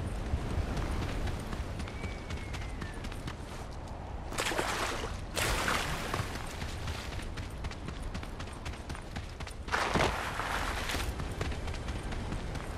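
Footsteps thud quickly on the ground.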